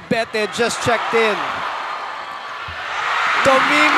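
A large crowd cheers in an echoing arena.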